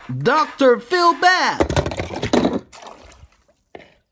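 A toy truck splashes into water.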